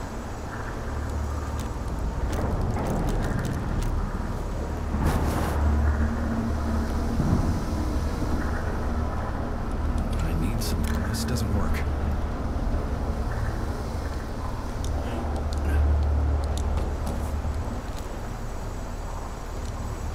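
A young woman talks softly close to a microphone.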